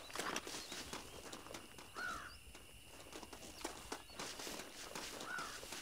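Footsteps crunch through dry brush at a steady walking pace.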